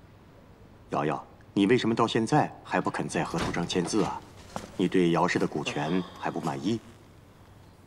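A middle-aged man speaks firmly.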